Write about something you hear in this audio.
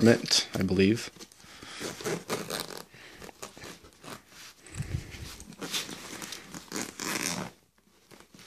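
A padded fabric bag rustles and thumps as it is handled.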